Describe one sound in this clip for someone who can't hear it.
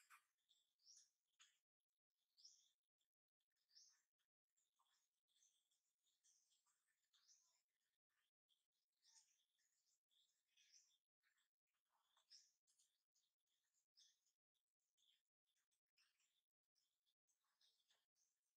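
A baby monkey squeals with high, repeated cries close by.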